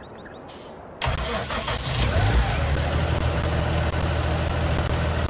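A tractor engine starts up and idles with a low rumble.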